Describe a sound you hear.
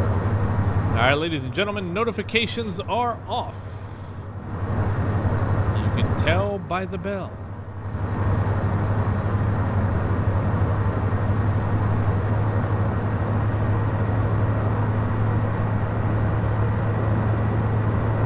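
A single-engine turboprop drones steadily in flight.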